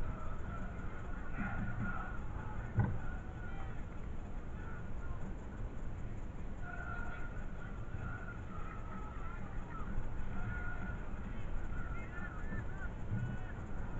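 A corner flag flaps in the wind.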